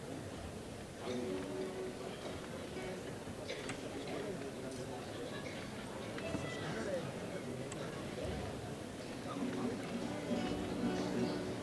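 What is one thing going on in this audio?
A group of young voices sings together in a large echoing hall.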